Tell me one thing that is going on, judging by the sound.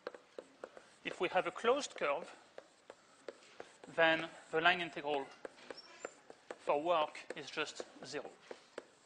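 A man speaks calmly, as if lecturing.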